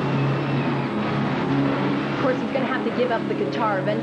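An electric guitar plays loudly through amplifiers.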